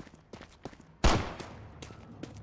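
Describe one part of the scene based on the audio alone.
A gunshot cracks once.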